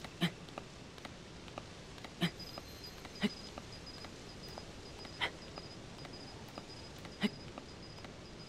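A character climbs, with soft thumps and scrapes at a steady, slow pace.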